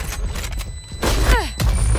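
A rifle shot cracks loudly and rings out.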